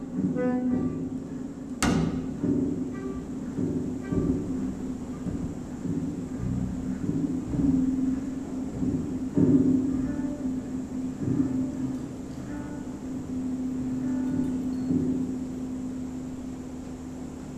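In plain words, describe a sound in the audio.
A double bass plucks a walking line.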